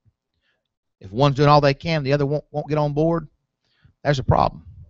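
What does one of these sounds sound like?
A man preaches loudly through a microphone in an echoing hall.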